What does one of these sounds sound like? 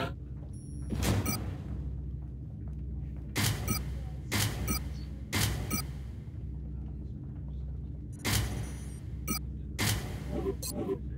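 Short metallic clicks and clanks sound again and again.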